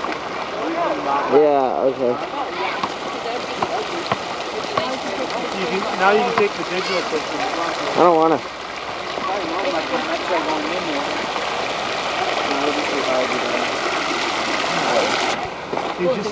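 Young boys talk and call out nearby, outdoors.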